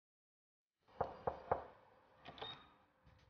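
A door handle clicks as it is turned.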